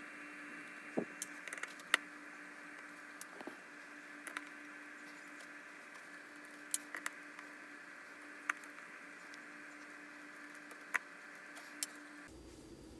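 Fingers tap and click on a hard plastic casing.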